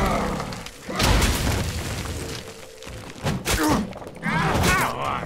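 A sword swishes and clangs in a fight.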